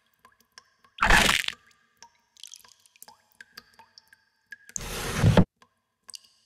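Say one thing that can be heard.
A short, loud, noisy game sound effect bursts out twice.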